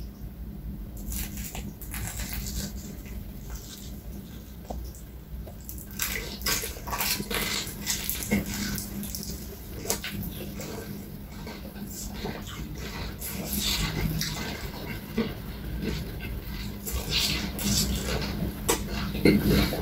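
Crispy fried chicken crunches loudly close by.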